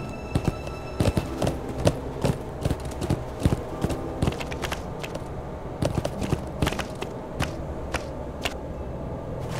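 A horse's hooves clop quickly on hard ground.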